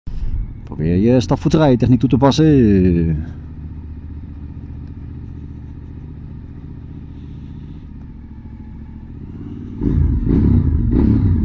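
A motorcycle engine rumbles steadily at low speed.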